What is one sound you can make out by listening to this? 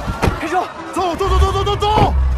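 A man shouts urgently up close.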